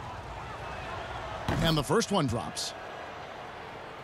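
A crowd cheers loudly after a basket.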